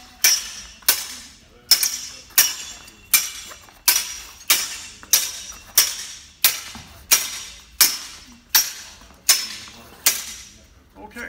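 Wooden practice swords clack together in sharp, regular strikes, ringing in an echoing hall.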